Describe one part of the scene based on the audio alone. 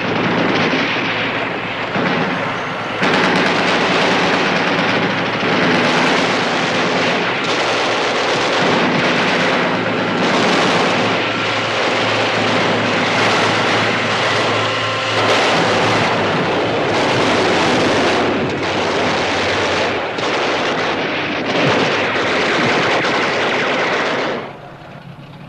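Gunfire and explosions roar loudly and without pause.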